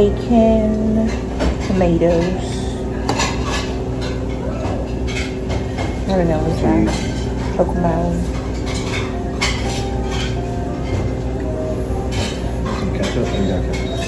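Cutlery clinks and scrapes against a plate.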